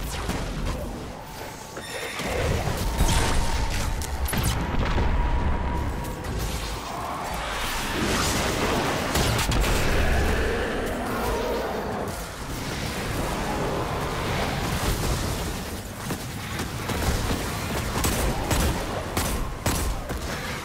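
Blasts crackle and boom.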